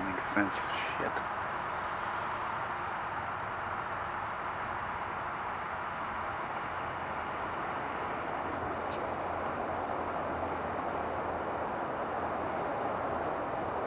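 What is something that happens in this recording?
A jet engine roars steadily in the distance.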